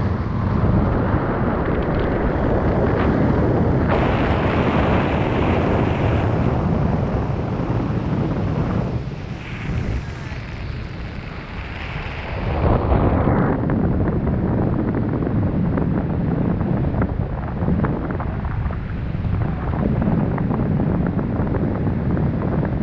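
Strong wind rushes and buffets loudly past a microphone.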